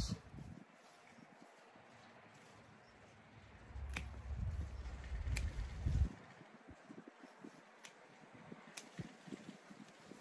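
Scissors snip plant stems.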